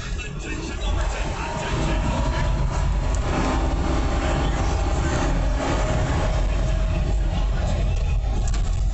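A car engine revs up and grows louder as the car speeds up.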